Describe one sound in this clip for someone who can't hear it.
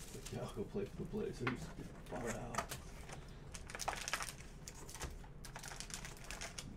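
Plastic wrapping crinkles and rustles as it is handled and torn open.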